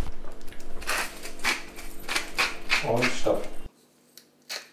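Dishes and utensils clatter on a counter.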